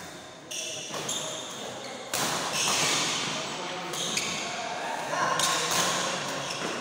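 A racket strikes a shuttlecock with a sharp pop.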